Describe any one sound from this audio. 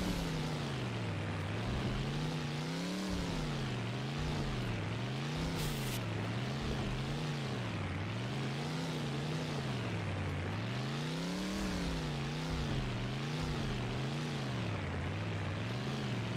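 A car engine revs up and down repeatedly as gears shift.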